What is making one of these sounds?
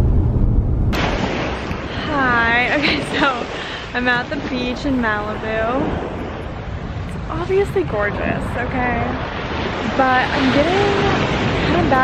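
Waves wash softly onto a beach.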